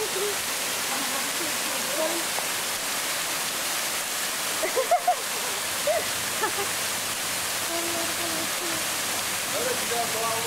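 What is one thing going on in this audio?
A man talks and calls out nearby.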